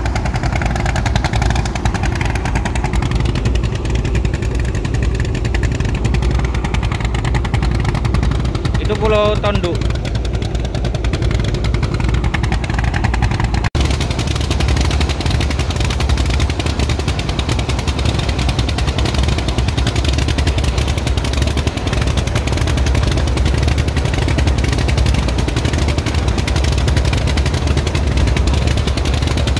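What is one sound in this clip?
A boat engine drones steadily throughout.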